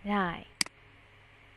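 A woman speaks briefly through a headset microphone over an online call.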